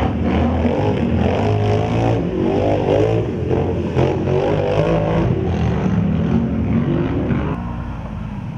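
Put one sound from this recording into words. A quad bike engine buzzes and revs loudly.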